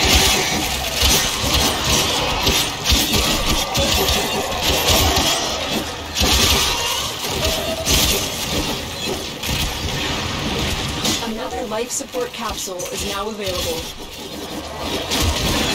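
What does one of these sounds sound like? Game weapons fire and slash with loud bursts.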